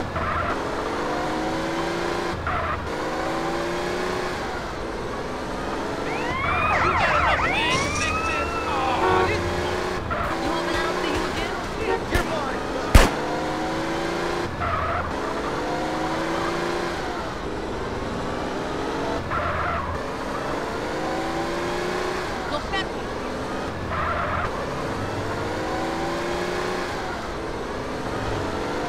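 A car engine revs up and shifts gears over and over.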